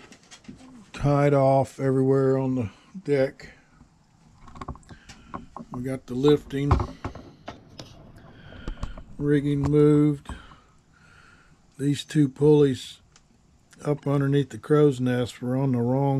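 A man speaks calmly and close by, explaining.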